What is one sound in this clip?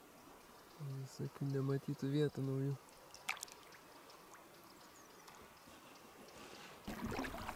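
Water laps gently against a boat on a calm river.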